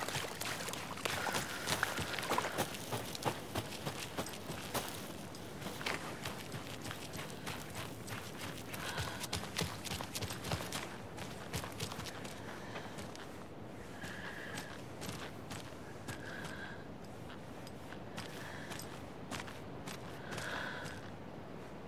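Footsteps crunch over wet leaves and gravel.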